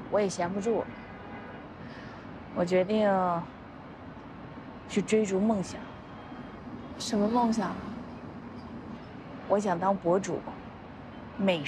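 A woman speaks calmly and close by.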